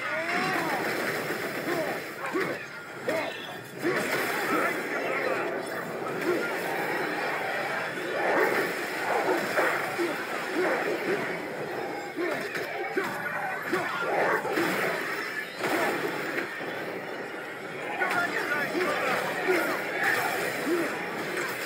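Creatures screech and growl.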